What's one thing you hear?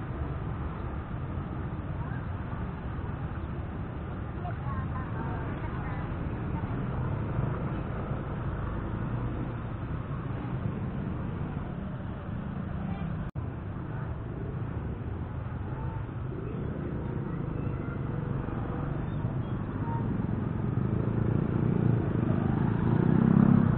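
A motorcycle engine hums steadily at low speed.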